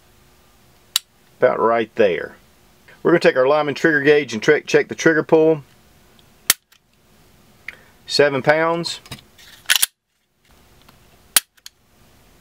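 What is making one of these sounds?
A pistol's trigger clicks sharply.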